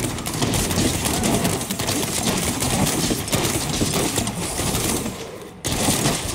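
Magic blasts crackle and boom in rapid bursts.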